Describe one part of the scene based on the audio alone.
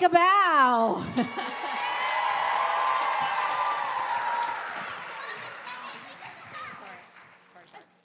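An audience claps and cheers.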